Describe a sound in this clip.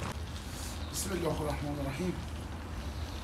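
A man speaks briefly nearby.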